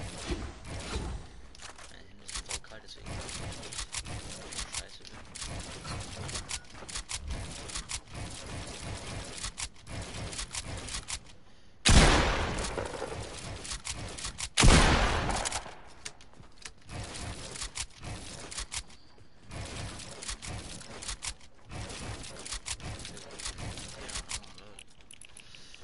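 Building pieces snap into place with rapid, quick clicks.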